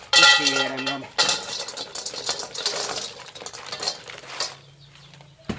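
Dry pods pour and rattle into a metal pan.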